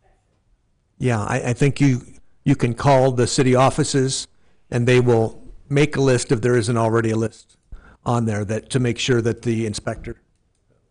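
A woman speaks loudly through a microphone.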